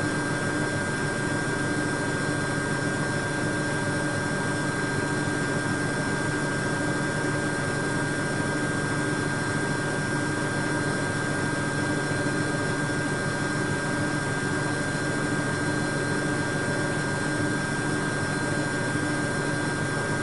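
Water sloshes softly inside a washing machine.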